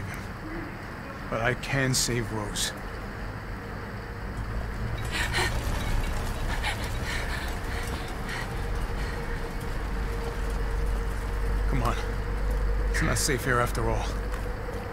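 A man speaks in a low, grim voice.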